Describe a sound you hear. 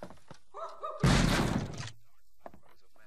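A gun fires with a loud, ringing blast.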